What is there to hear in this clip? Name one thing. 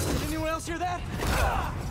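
A heavy blow lands with a thud.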